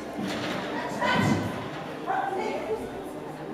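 A woman calls out commands to a dog in a large echoing hall.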